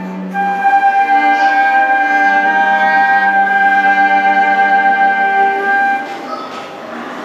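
A cello plays low sustained notes.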